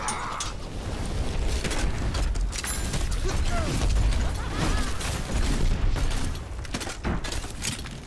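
Fiery explosions boom.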